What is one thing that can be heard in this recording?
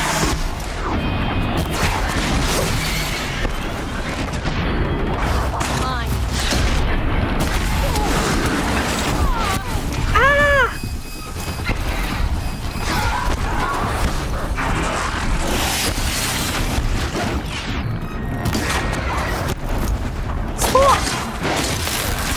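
Metal machines clank and growl.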